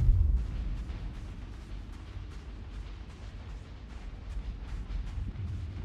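A group shuffles with slow, heavy footsteps.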